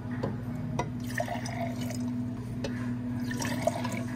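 Water pours into glass jars.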